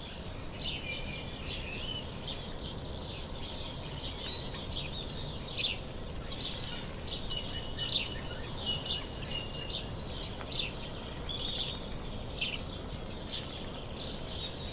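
A squirrel gnaws on a pine cone.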